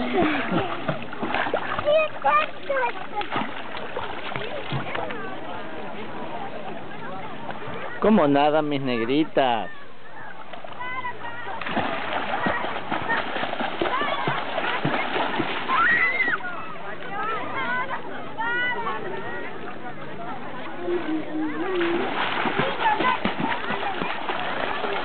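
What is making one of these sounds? Water splashes as children kick and swim.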